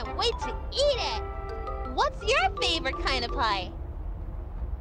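A young girl's high cartoon voice speaks cheerfully and excitedly.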